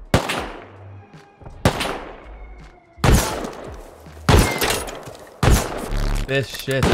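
A shotgun fires loud blasts that ring out and fade.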